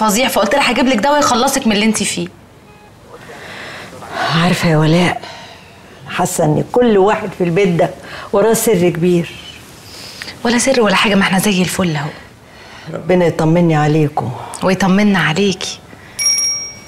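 An older woman answers calmly nearby.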